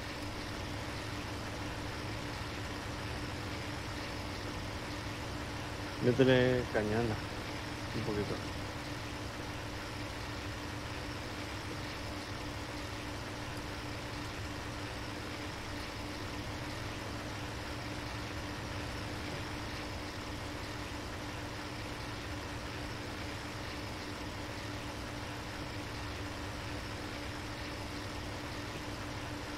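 A propeller engine drones steadily in flight.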